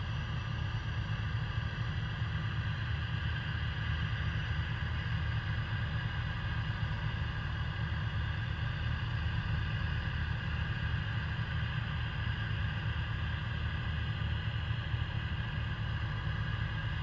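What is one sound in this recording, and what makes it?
Gas hisses steadily as it vents from a rocket on a launch pad.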